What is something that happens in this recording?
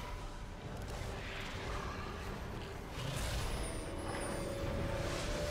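Spells and sword strikes crackle and clash in a game battle.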